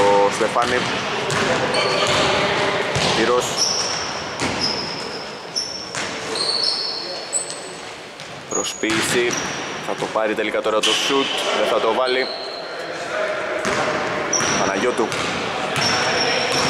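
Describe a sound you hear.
Players call out to each other across an echoing hall.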